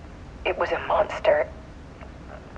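A woman speaks briefly and with emotion.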